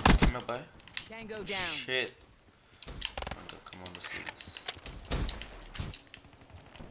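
Pistol shots crack in quick bursts.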